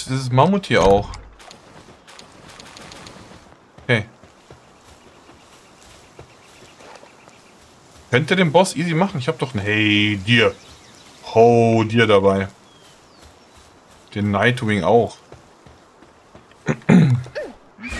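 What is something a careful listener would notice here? A middle-aged man talks with animation close to a microphone, in short bursts.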